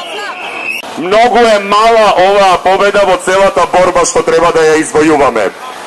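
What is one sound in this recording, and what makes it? A man speaks loudly into a microphone through a loudspeaker.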